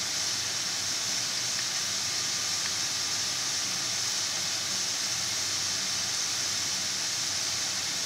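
Potato strips sizzle and crackle steadily in hot frying oil.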